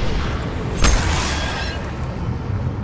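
A blade swings and strikes with a sharp crack and a whoosh.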